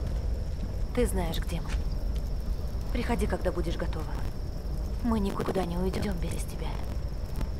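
A young woman speaks softly and with emotion.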